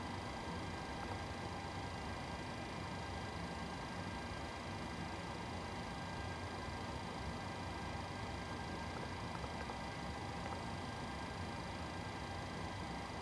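A steady cockpit hum drones with a few faint high whines.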